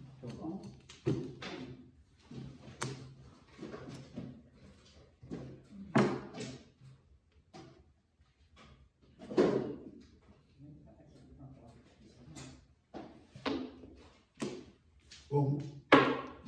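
Mahjong tiles clack sharply against each other and the table.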